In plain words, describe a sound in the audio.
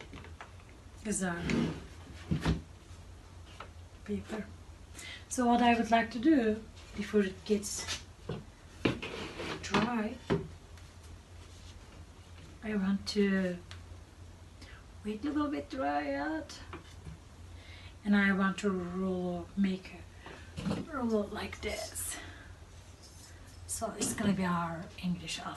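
A woman talks calmly and explains nearby.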